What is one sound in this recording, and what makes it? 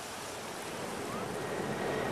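Small waves wash softly onto a sandy beach.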